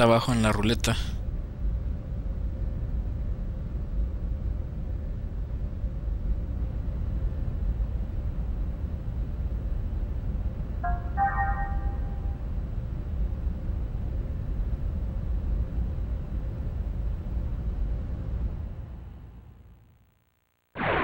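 A low steady electronic hum drones.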